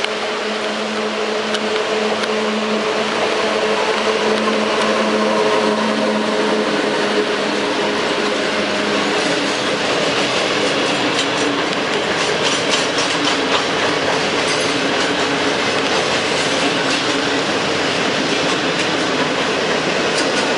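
A long freight train rumbles and clatters steadily over the rails.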